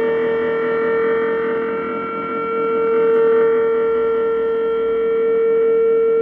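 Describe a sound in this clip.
A steady electronic tone hums from loudspeakers.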